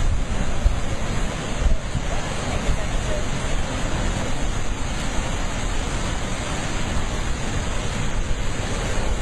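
Heavy surf churns and crashes against rocks.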